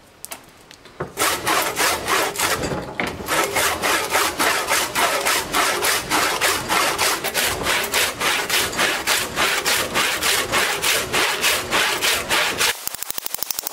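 A hand saw cuts through wood in quick, steady strokes.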